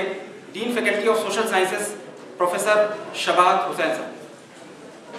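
A man sings loudly, close to a microphone.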